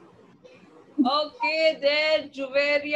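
A young girl sings over an online call.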